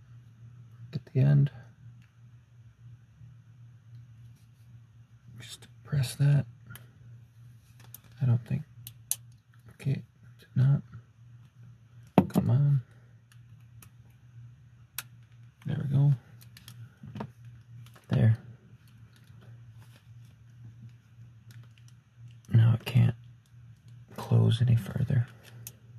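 Metal handcuffs click and ratchet shut.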